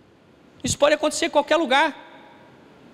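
A man speaks with animation into a microphone, his voice ringing in a large room.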